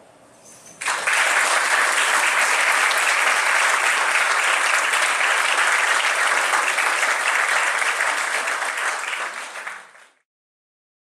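A piano plays.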